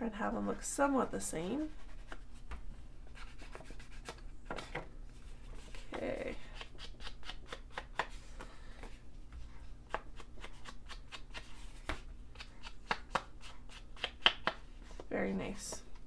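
A rubber stamp taps quickly and repeatedly on paper.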